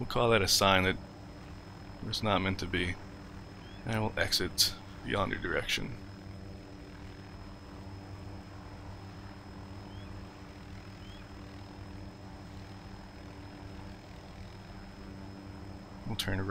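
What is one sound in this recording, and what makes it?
A helicopter engine hums steadily with its rotor whirring.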